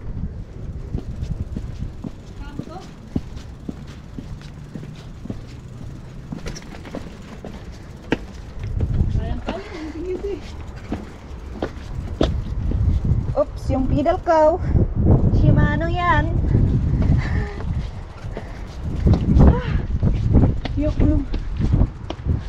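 Bicycle tyres roll and crunch over stone paving.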